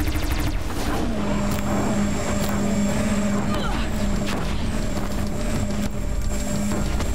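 A machine fires loud humming energy beams.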